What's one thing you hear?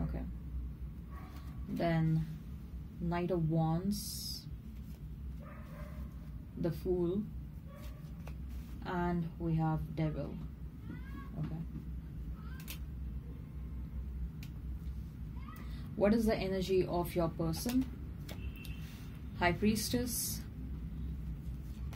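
Playing cards slap softly onto a cloth-covered table.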